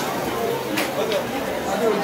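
A sparkler fountain fizzes and crackles.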